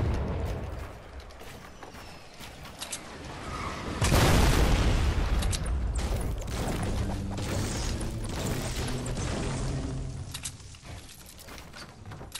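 Wooden walls snap into place with quick clattering knocks.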